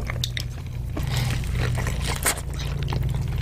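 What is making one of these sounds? Crunchy taco shells crackle as they are bitten.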